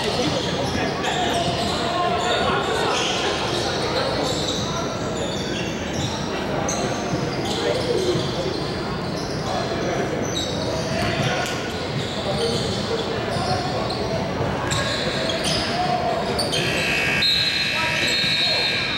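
Young men call out to one another across the gym.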